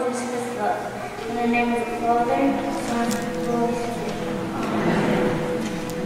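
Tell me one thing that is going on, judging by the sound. A young girl speaks through a microphone.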